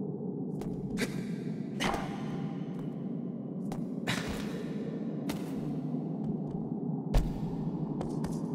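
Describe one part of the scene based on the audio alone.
A horse's hooves clop on stone.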